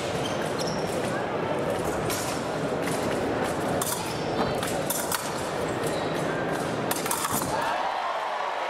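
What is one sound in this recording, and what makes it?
Fencing blades click and clash.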